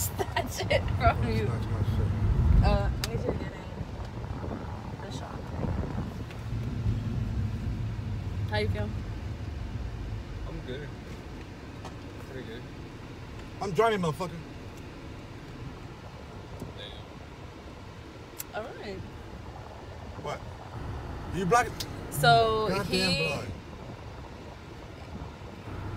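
A car engine hums low inside the car.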